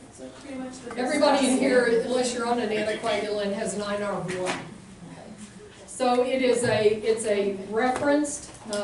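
A woman speaks to a room from a short distance, with some echo.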